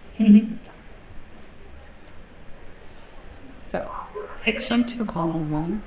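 A woman speaks into a microphone, heard through loudspeakers in a large room.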